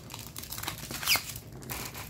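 Plastic film crinkles as hands handle it.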